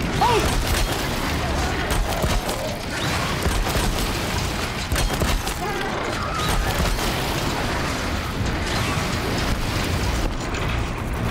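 A mechanical beast roars and screeches during a fight.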